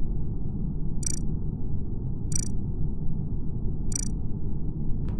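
Short electronic clicks sound as game menu buttons are pressed.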